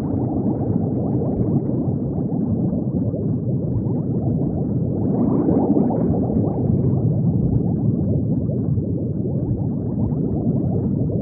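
Bubbles burble and gurgle steadily underwater.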